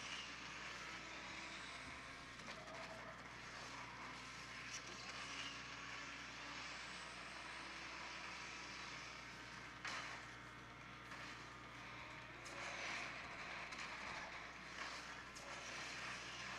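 Racing car engines roar and whoosh from a small phone speaker.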